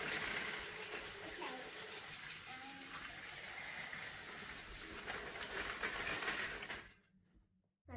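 Toy train cars clatter as a child's hands move them.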